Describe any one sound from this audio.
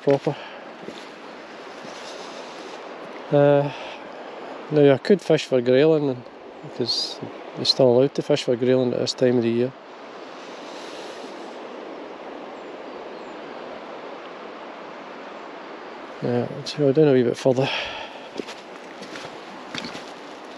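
A river flows gently and gurgles over stones, outdoors.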